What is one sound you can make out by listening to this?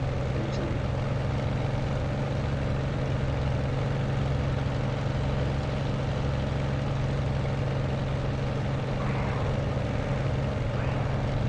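A propeller aircraft engine drones steadily.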